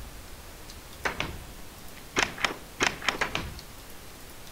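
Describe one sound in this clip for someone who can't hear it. Soft clicks sound several times in quick succession.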